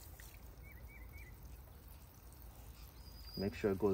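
Water sprinkles from a watering can onto grass.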